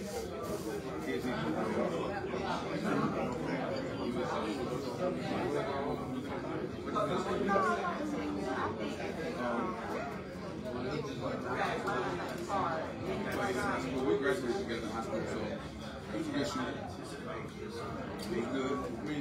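Many people chatter quietly in the background.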